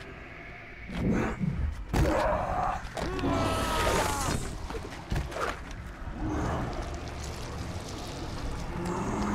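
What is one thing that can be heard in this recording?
Heavy blows thud and clang during a fight.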